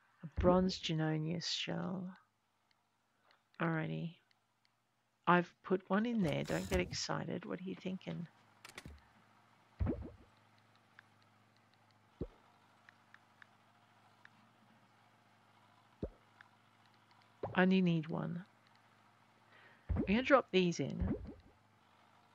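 A woman talks casually and with animation into a nearby microphone.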